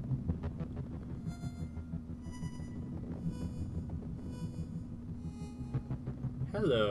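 Short chiming notes sound one after another.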